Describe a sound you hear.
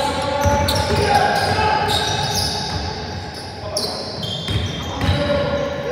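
A basketball thuds as it bounces on the floor.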